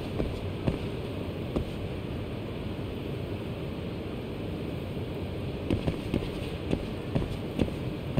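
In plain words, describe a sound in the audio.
Footsteps clang on a metal walkway.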